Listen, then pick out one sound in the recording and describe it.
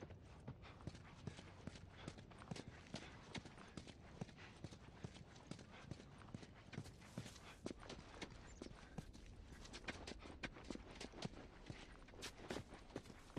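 Footsteps walk steadily over a hard floor and then down stone steps.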